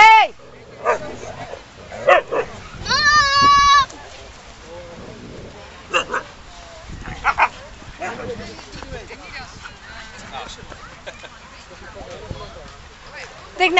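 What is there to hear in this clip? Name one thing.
Dogs yelp and howl in high, drawn-out cries.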